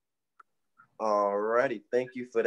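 A young man speaks over an online call.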